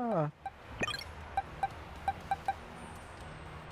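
Short electronic beeps tick as a menu is scrolled.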